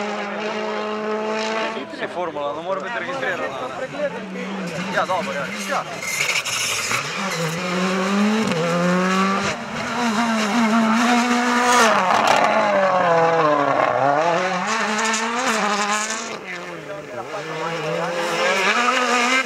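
Rally car engines roar and rev hard.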